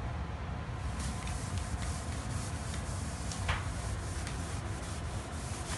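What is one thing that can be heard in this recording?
A cloth rubs and scrubs against a wall.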